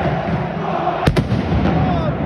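A firecracker bangs sharply on the pitch.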